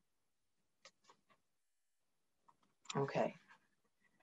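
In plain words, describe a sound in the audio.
Paper pages rustle as a book is opened.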